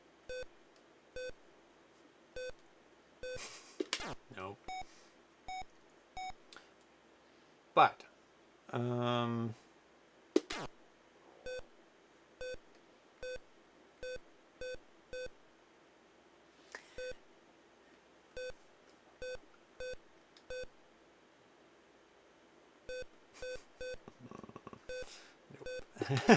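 Short electronic beeps sound from a video game at an even pace.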